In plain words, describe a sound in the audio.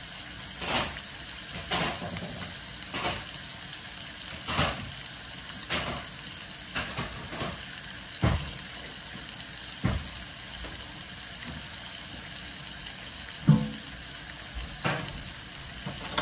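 Kitchen utensils clink and knock.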